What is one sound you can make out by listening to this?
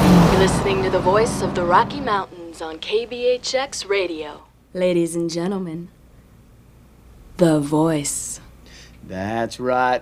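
A young woman speaks into a microphone in a lively broadcast voice.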